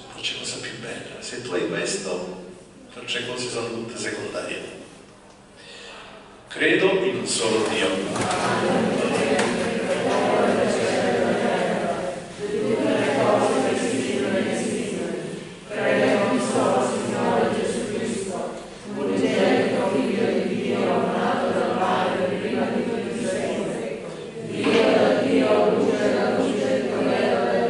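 A man speaks steadily through a microphone in a large echoing room.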